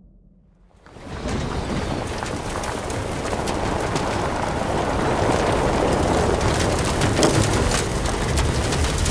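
Tyres spin and churn through loose dirt.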